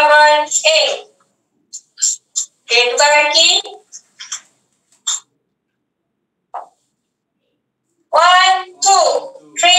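A man gives instructions over an online call, speaking in short bursts.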